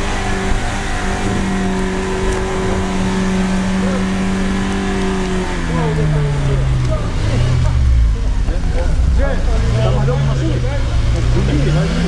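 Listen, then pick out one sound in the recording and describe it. A car engine drones steadily, then revs up and down as it strains.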